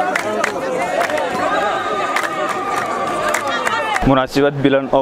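People in a crowd clap their hands in rhythm.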